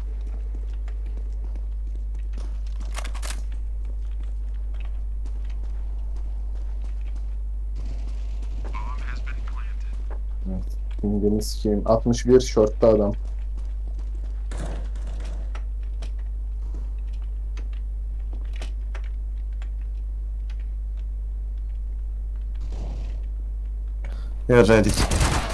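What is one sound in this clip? Footsteps tread on stone ground.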